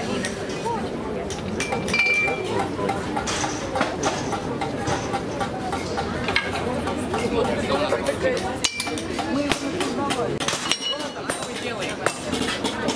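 Children and adults chatter nearby outdoors.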